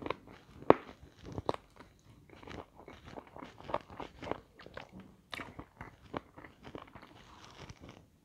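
A woman chews crunchy food loudly and wetly close to a microphone.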